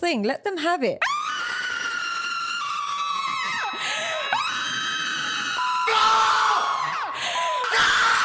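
A woman screams loudly and shrilly.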